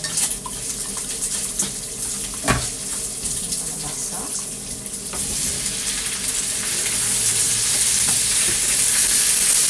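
A spatula scrapes and clicks against a frying pan.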